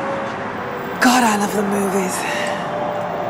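A young woman calls out loudly nearby.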